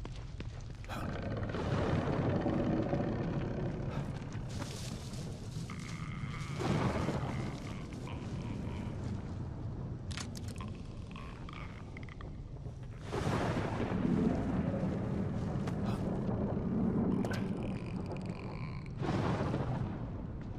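Footsteps rustle through dense bushes and grass.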